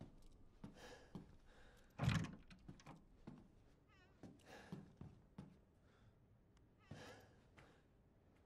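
A young man talks into a microphone in short, animated bursts.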